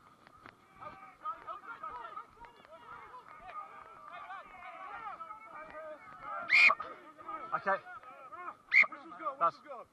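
Young men shout to one another.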